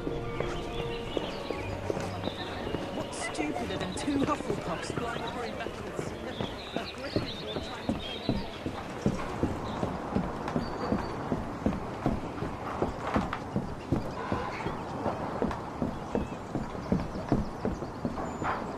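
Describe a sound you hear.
Quick footsteps run across stone and then over hollow wooden boards.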